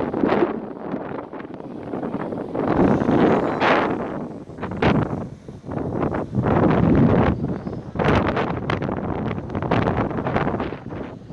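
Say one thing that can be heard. Gusty wind blows against the microphone.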